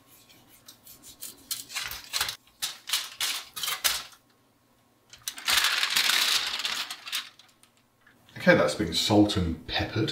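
Hands rub and slap seasoning into raw meat.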